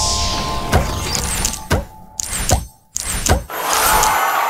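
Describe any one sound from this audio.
Game sound effects chime and burst as gems match.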